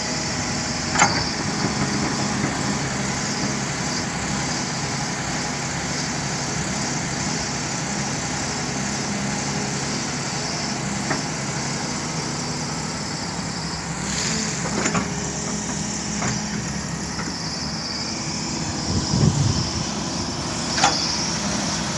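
An excavator bucket scrapes and knocks against rocky soil.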